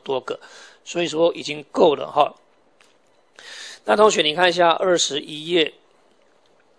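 A man speaks calmly and clearly into a clip-on microphone.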